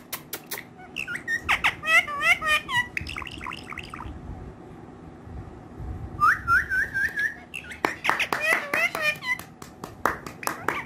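A parrot chirps and squawks in short, quick bursts.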